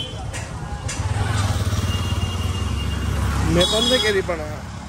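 A motorbike engine rumbles past.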